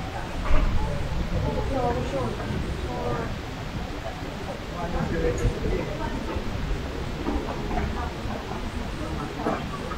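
Suitcase wheels roll across a tiled floor.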